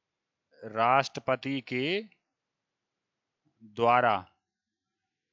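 A man speaks through a headset microphone, explaining calmly.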